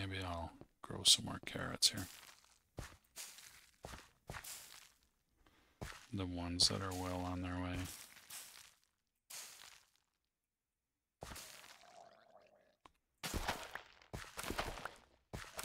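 Short rustling pops sound as plants are picked and planted.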